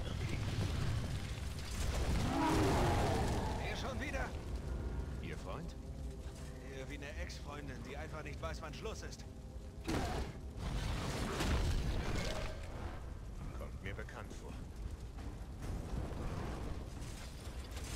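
A monster roars loudly.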